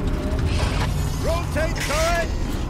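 A man speaks in a harsh, commanding voice.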